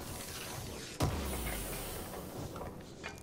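Gunfire cracks and bullets ping off metal nearby.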